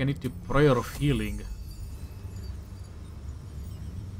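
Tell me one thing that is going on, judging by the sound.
A magic spell whooshes and shimmers brightly.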